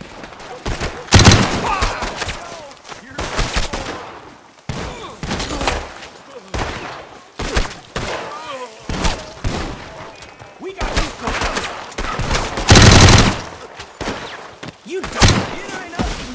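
Gunshots ring out loudly.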